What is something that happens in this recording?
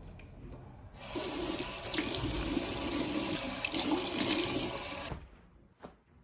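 Water runs from a tap and splashes into a sink drain.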